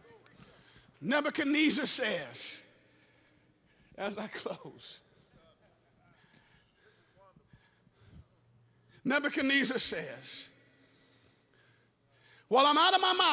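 A man preaches loudly with passion through a microphone in a large echoing hall.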